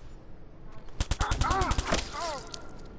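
Rapid bursts of gunfire crack loudly.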